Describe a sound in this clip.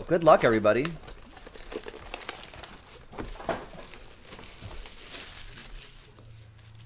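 Plastic wrap crinkles and tears.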